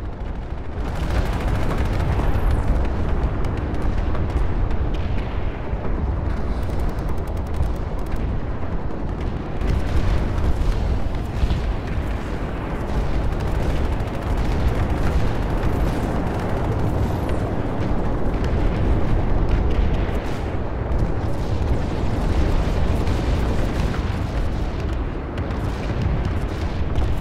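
A heavy armoured vehicle's engine rumbles steadily as it drives.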